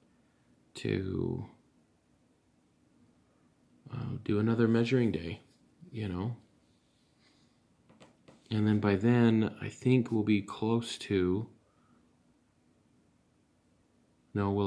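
A man talks calmly close to the microphone, with pauses.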